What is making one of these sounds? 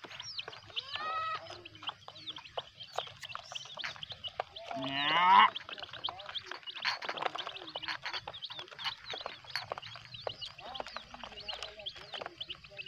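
Many chicks cheep and peep constantly, close by.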